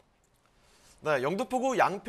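A young man speaks clearly and steadily into a microphone.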